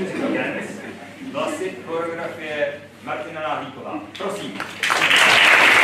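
A young man speaks clearly into a microphone in a large hall.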